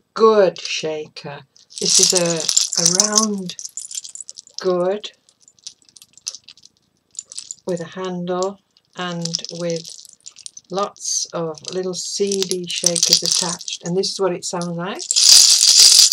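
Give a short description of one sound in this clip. An elderly woman talks calmly close to the microphone.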